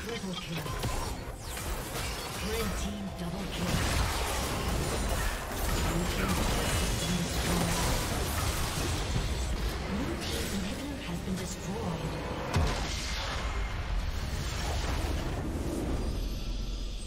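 Game spells and attacks crash and clash in a fast battle.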